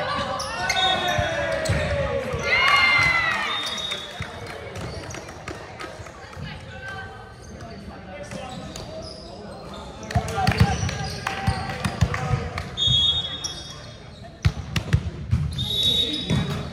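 A volleyball thumps against hands.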